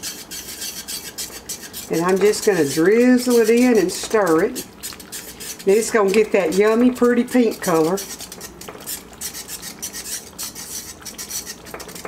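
Thick cream pours into a pan of sauce.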